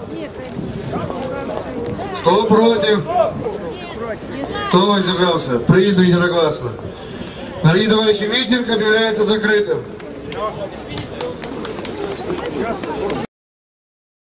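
A man speaks loudly and forcefully into a microphone, heard through loudspeakers outdoors.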